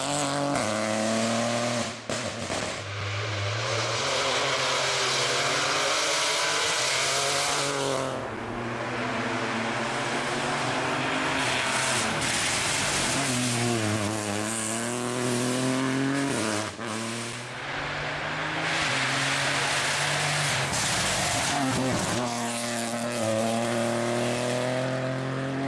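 Tyres hiss and crunch over a loose road surface.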